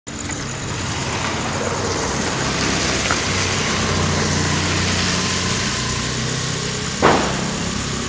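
A car engine hums as a vehicle drives past.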